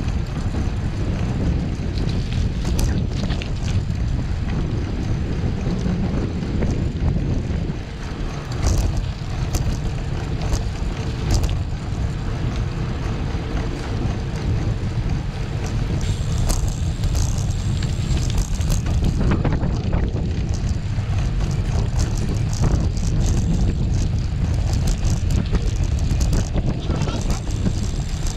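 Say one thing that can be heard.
Wind rumbles and buffets steadily outdoors.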